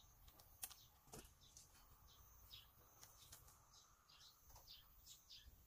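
Hands rustle and crackle against a window frame.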